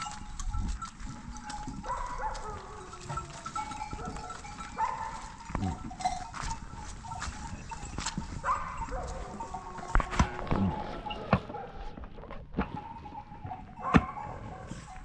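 Footsteps crunch on dry earth and gravel.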